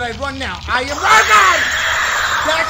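A young man shouts loudly in fright.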